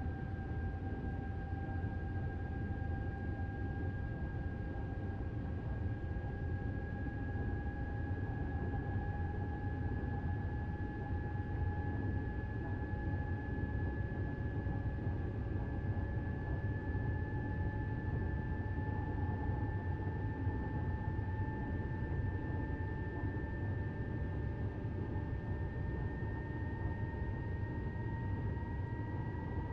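An electric train's motor whines, slowly rising in pitch.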